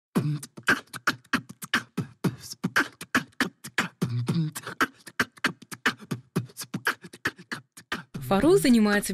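A young man raps quickly and rhythmically into a close microphone.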